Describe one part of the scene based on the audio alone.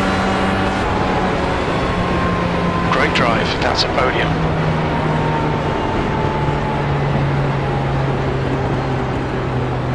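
An open-wheel race car engine drops in pitch as the car eases off.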